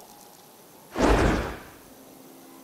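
An energy beam whooshes with a loud rushing blast.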